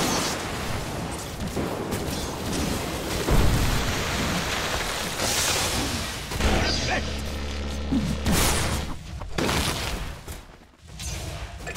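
Spell effects crackle and whoosh during a fight.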